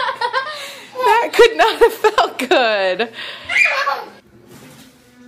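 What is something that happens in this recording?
A young child squeals excitedly.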